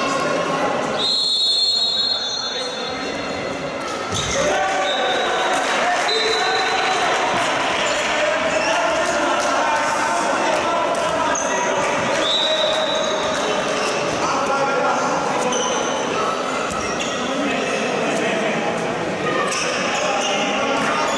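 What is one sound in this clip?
Sneakers squeak on a hard indoor court in a large echoing hall.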